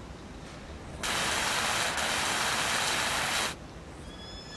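A repair torch hisses loudly and steadily.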